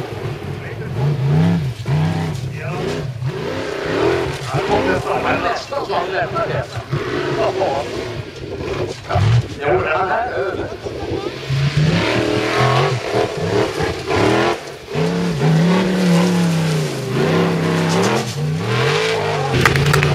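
A racing engine roars and revs hard, rising and falling in pitch.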